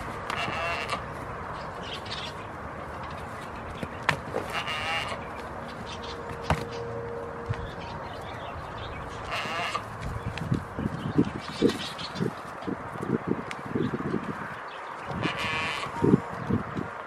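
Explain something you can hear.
Goats bleat nearby.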